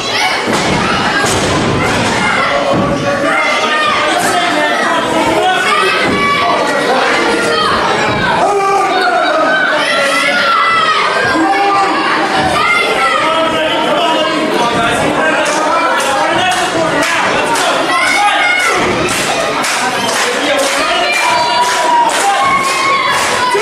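A crowd of men and women cheer and shout in an echoing hall.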